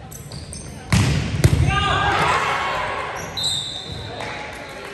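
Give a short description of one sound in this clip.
A crowd of spectators cheers loudly in an echoing hall.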